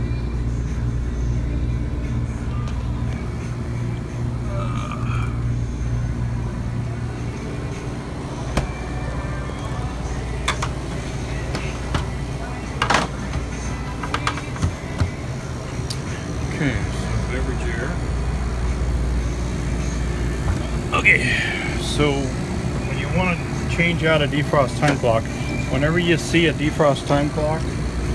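A refrigeration unit hums steadily.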